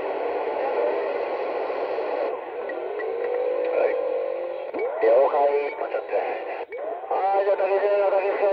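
Static hisses steadily from a radio loudspeaker.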